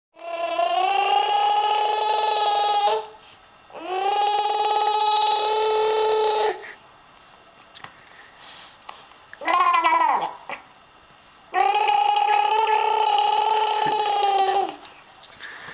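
A baby squeals in long, steady, high cries close by.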